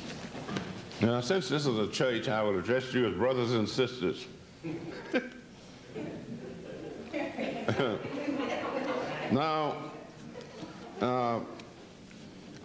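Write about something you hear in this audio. An elderly man speaks calmly into a microphone through a loudspeaker.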